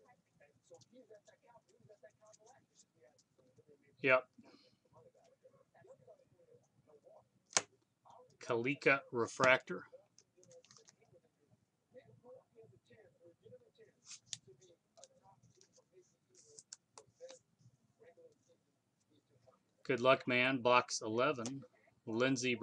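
Trading cards rustle and slide as they are flipped through by hand.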